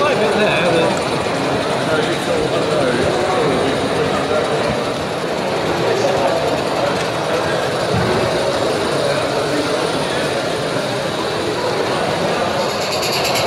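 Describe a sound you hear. A model train rolls quietly along its track.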